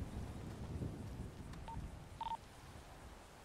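Footsteps crunch on dry dirt and brush.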